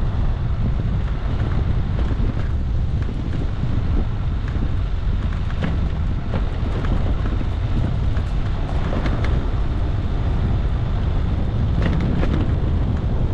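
Loose parts of a vehicle rattle and knock over bumps.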